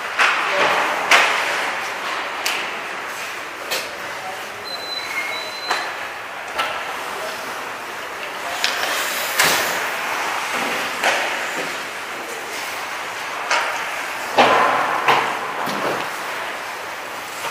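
Pucks bang against the boards.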